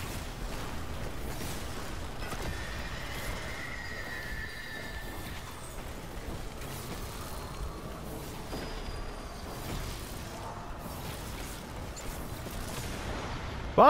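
Energy blasts whoosh and explode.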